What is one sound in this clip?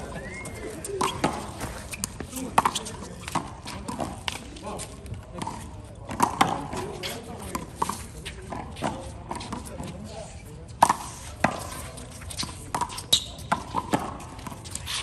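A rubber ball smacks sharply against a wall and the ground again and again, echoing outdoors.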